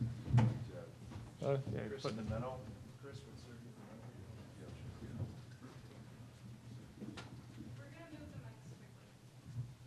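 Men talk quietly nearby in a room with some echo.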